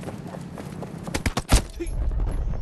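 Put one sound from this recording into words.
Gunshots crack in a quick burst.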